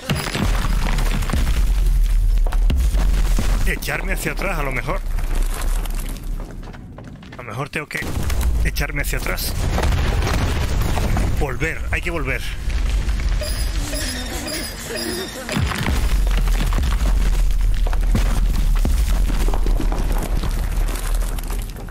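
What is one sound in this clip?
Quick footsteps patter on rocky ground.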